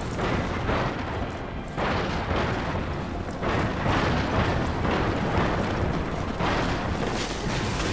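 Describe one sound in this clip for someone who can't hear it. A large walking machine stomps with heavy, thudding footsteps.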